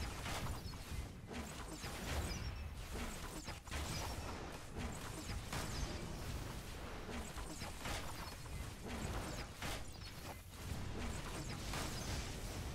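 Energy beams zap and crackle in rapid bursts.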